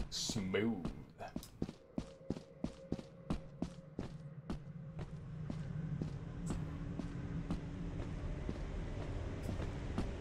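Footsteps crunch steadily over dirt.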